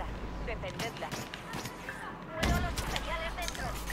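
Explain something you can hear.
Blaster guns fire in a rapid exchange of shots.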